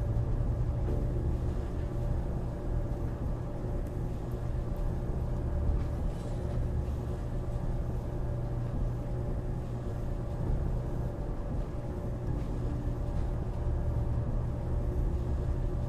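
A lift hums low and steadily as it rises.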